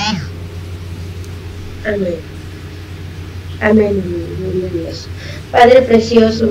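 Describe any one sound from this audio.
A young woman speaks haltingly over an online call.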